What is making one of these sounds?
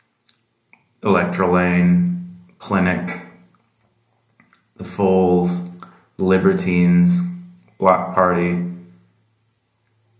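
A middle-aged man speaks calmly and closely in short phrases.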